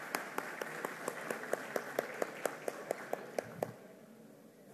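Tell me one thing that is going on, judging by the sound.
A crowd claps in rhythm in a large echoing hall.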